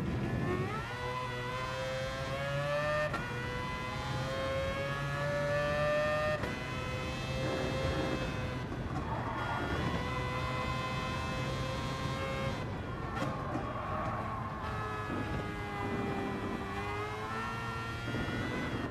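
A racing car engine revs high, rising in pitch and dropping with each gear change.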